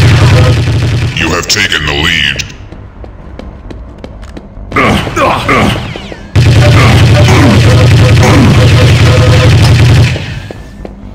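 A rapid-fire gun shoots in long, loud bursts.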